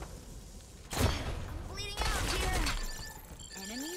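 A large explosion booms.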